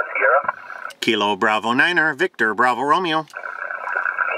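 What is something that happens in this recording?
A middle-aged man speaks calmly and closely into a handheld microphone.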